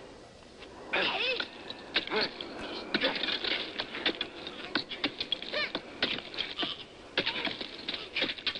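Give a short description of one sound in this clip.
Rock cracks and scrapes as it is pried loose.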